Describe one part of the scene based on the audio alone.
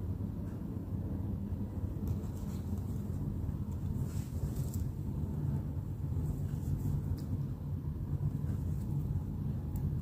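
A crochet hook rustles softly against thread.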